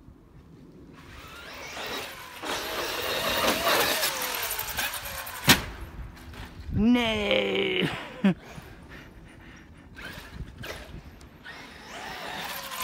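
A small remote-control car's electric motor whines, rising and falling in pitch.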